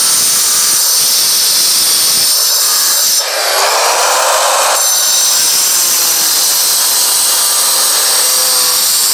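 A power saw whines loudly as it cuts through stone.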